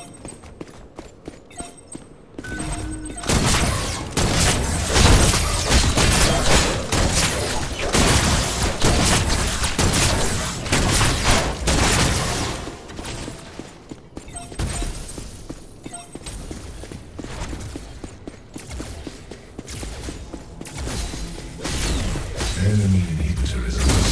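Gunfire and energy blasts crackle rapidly in a video game.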